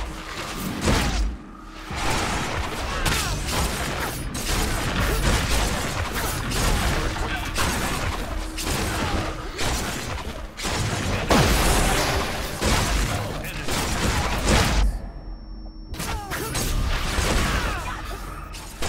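Weapons strike with heavy, rapid impacts.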